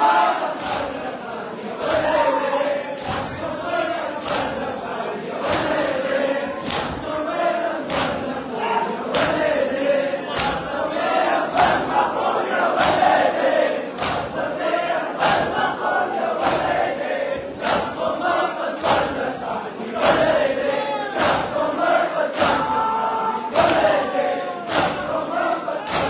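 A crowd of men chant together loudly.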